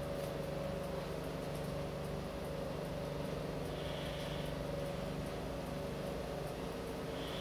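A watch movement ticks quickly and softly.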